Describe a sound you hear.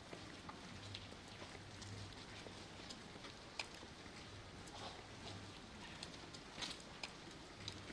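Footsteps shuffle on a paved street.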